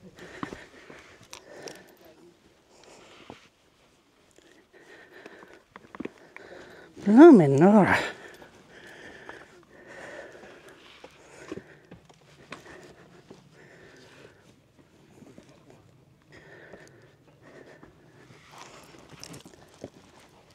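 Footsteps crunch and scrape over loose rocks.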